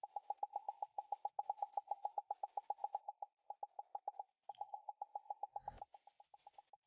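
Game targets pop in a rapid, steady stream of sharp, ringing clicks.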